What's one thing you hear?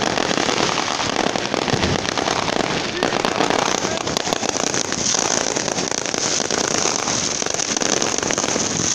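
Fireworks crackle and pop rapidly and continuously nearby.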